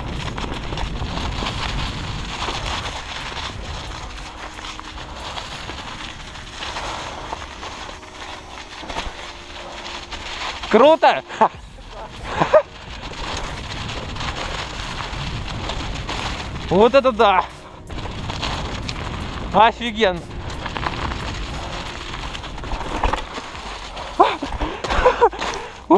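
Bicycle tyres rumble and crunch over dry leaves and dirt.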